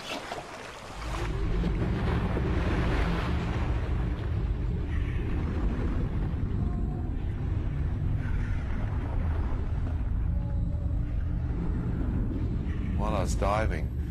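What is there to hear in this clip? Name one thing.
Air bubbles gurgle and rush underwater.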